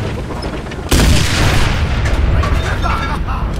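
A tank cannon fires with a loud, sharp boom that echoes away.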